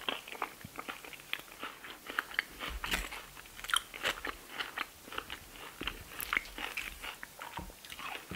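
A metal spoon scrapes and clinks against a plate.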